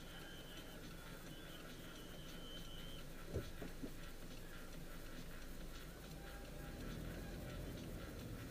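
A car engine idles with a low steady rumble inside the car.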